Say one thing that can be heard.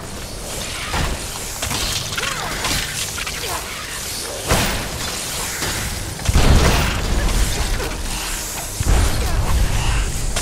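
A blade swings and strikes with sharp impacts.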